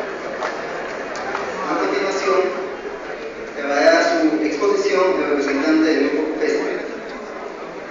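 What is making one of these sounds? A man speaks into a microphone over loudspeakers, echoing in the hall.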